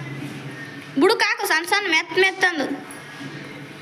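A woman speaks up loudly with animation.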